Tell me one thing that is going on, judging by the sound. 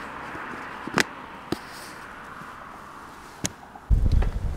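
A phone clicks into a plastic mount.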